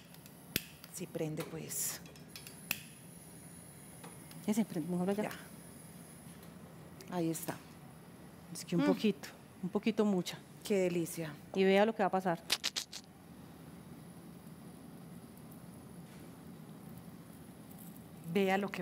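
A woman talks calmly.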